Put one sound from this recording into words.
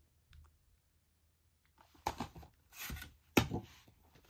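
A plastic disc case is set down on carpet with a soft tap.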